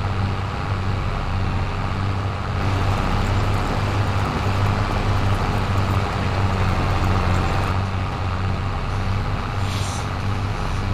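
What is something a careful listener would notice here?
A tractor engine hums steadily at a low, even pitch.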